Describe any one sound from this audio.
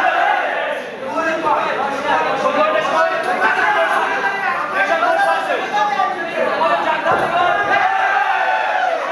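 A crowd of men shouts and cheers loudly.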